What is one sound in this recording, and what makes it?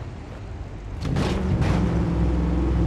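A truck slams into a car with a loud metallic crash.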